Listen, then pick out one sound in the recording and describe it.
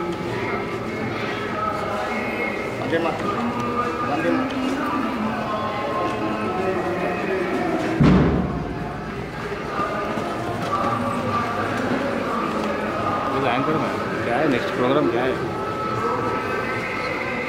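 A crowd of people chatters in the open air.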